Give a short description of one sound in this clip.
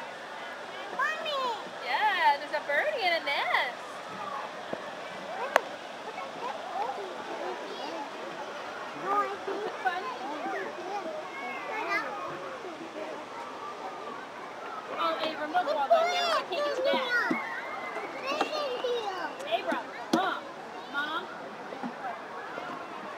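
Young children chatter and call out excitedly nearby.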